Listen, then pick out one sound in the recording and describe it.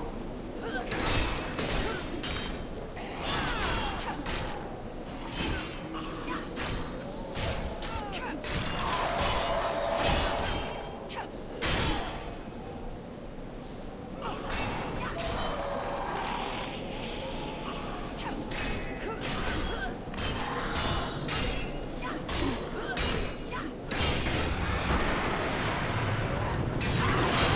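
Swords clash and strike in a fast fight.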